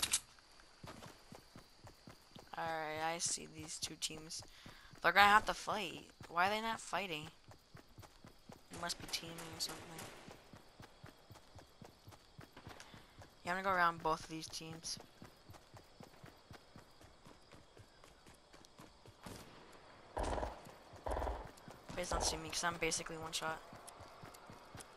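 Quick footsteps patter across grass.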